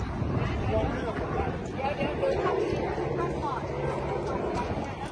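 A crowd of men chatter outdoors.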